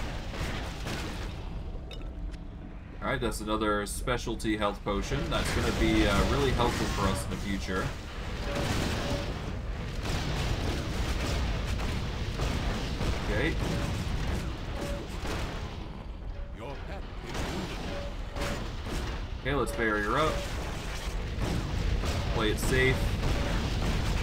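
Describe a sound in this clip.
Magic spells crackle and burst in a fast game battle.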